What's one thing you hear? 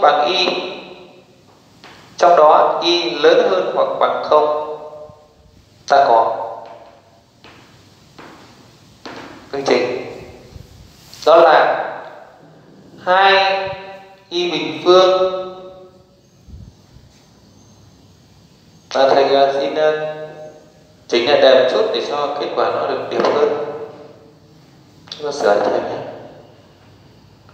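A man speaks clearly and steadily.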